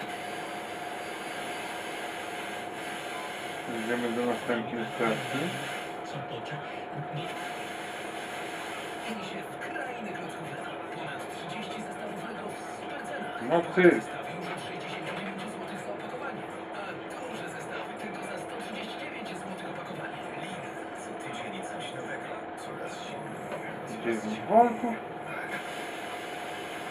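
An amplifier gives off a steady electrical hum.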